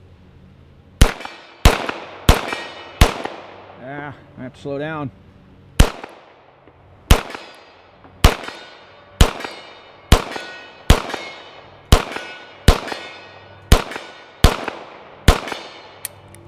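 A pistol fires shot after shot outdoors, each shot cracking sharply and echoing off the trees.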